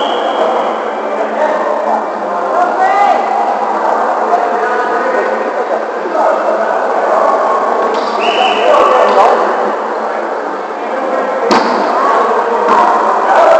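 Several men talk and call out in a large echoing hall.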